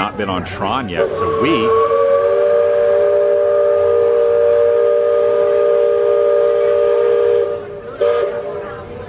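A riverboat's steam whistle blows a long, steady chord.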